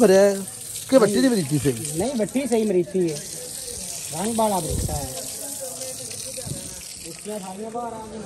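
Water sprays hard from a hose and splashes onto a stone floor.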